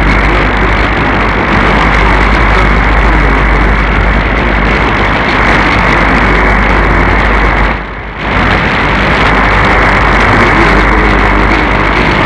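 Radio static hisses and crackles steadily from a receiver, briefly dipping quieter once.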